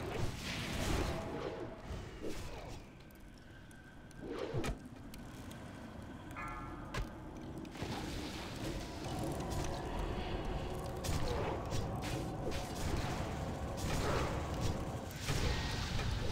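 Magical spell effects whoosh and crackle.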